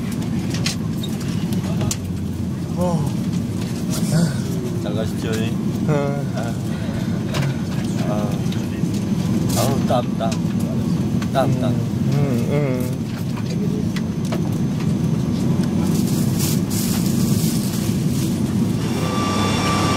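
A jet engine hums steadily inside an aircraft cabin.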